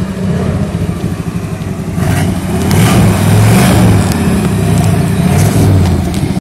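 A car engine revs hard and roars loudly.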